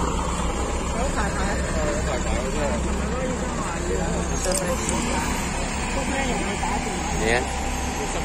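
A minibus engine idles nearby with a low rumble.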